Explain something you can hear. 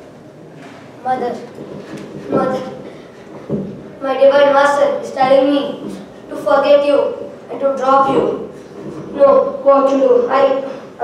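A young boy speaks loudly and clearly nearby.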